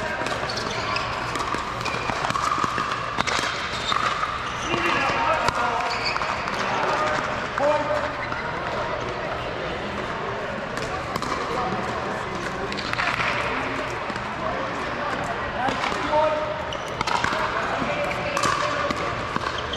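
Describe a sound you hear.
Paddles hit a plastic ball with sharp pops, back and forth.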